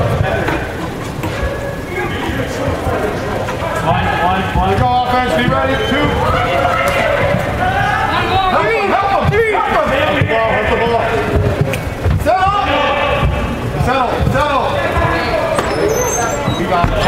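Adult spectators shout encouragement nearby in an echoing indoor arena.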